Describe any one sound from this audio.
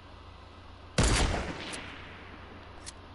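A sniper rifle fires a single loud shot that echoes and fades.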